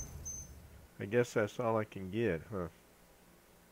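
A bright electronic chime rings in quick rising notes.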